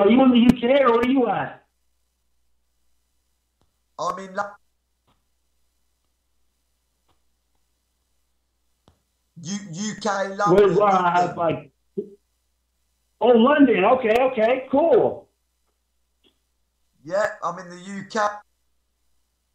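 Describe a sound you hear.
A woman speaks calmly into a microphone, in short bursts with pauses.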